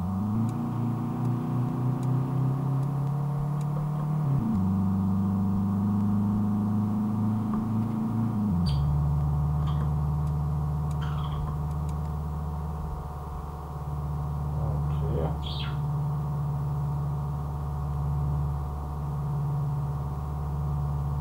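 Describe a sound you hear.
A car engine drones steadily, its pitch rising and dropping as the gears change.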